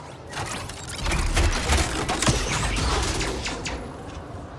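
A metal machine whirs and clanks into motion.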